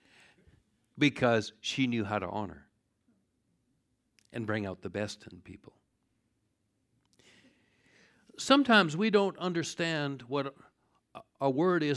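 An older man speaks calmly through a microphone, with pauses.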